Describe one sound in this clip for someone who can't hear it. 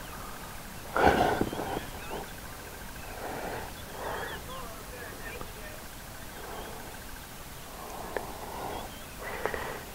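A baboon barks sharply nearby.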